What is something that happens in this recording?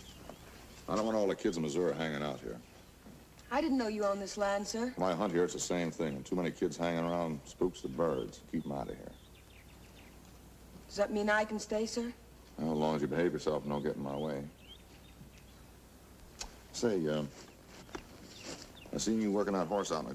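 An elderly man speaks slowly in a low, drawling voice.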